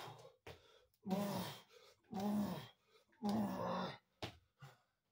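A man grunts and groans with effort.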